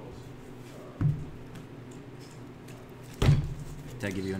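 A deck of cards thumps down on a soft mat.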